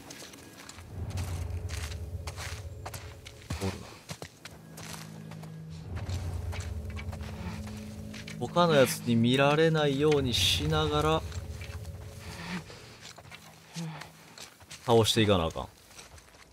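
Leaves and ferns rustle as someone crawls through dense undergrowth.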